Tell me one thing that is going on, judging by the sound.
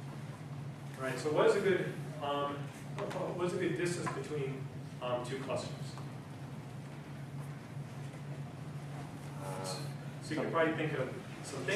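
A man speaks calmly in a room.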